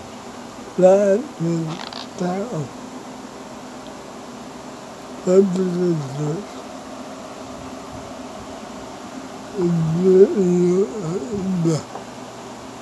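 A man speaks in short bursts close to the microphone.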